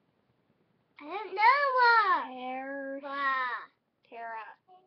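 A young girl speaks loudly and with animation in a high, sing-song voice, close by.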